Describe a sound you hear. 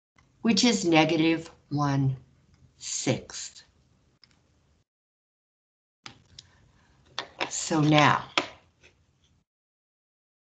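A woman speaks calmly and close through a microphone.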